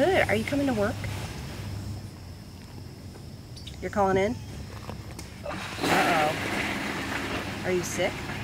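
A middle-aged woman talks on a phone nearby in short, animated bursts.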